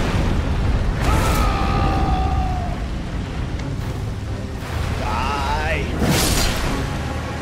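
A dragon growls and roars.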